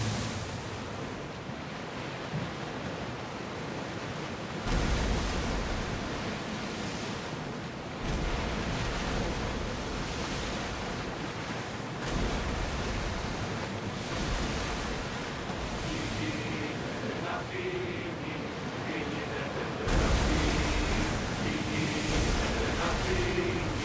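Waves splash and rush against a ship's hull.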